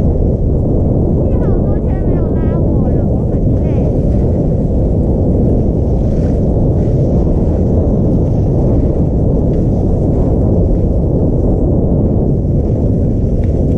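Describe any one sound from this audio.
Skis hiss and swish through soft snow.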